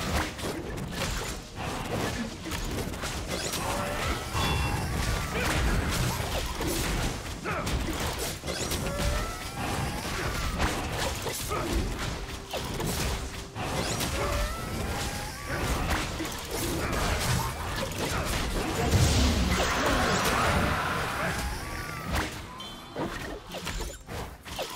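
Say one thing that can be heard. Magic blasts and hits crackle and thud in quick succession.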